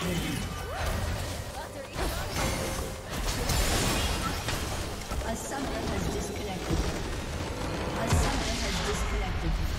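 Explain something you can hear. Game spells and weapons clash and burst in a busy fight.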